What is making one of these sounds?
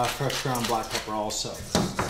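A pepper mill grinds.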